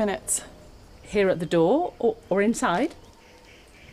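A woman talks calmly, close by.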